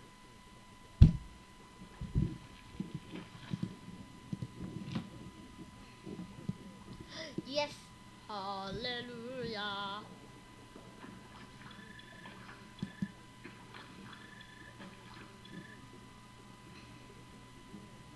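Soft watery game sounds blip and bubble.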